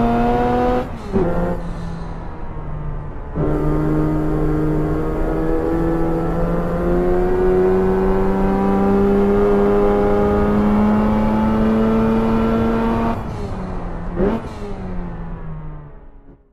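A racing car engine roars, revving up through the gears and dropping between shifts.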